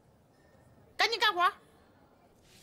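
A woman speaks sharply and commandingly, close by.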